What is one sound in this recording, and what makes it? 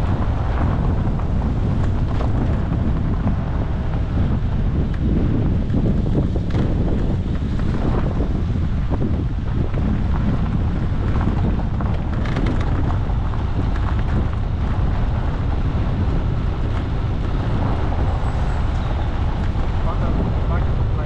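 Tyres crunch and rumble over a gravel track.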